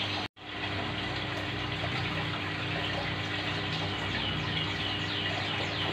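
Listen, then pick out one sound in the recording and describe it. An aquarium air pump hums low and steadily.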